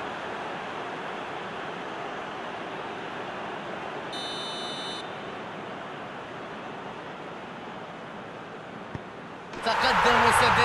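A stadium crowd cheers and chants steadily.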